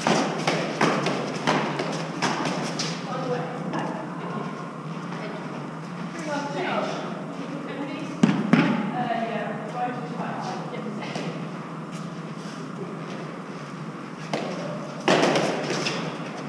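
A gloved hand strikes a hard ball, which smacks against a concrete wall with an echo.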